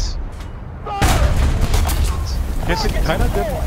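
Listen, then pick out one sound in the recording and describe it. A tank explodes with a deep rumbling blast.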